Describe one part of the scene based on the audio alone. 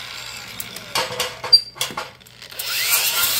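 Locking pliers clamp and click against metal.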